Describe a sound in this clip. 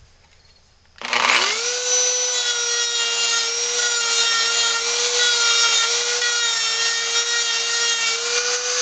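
A rotary tool whines at high speed, grinding wood.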